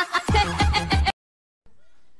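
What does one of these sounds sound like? A young woman laughs loudly and heartily.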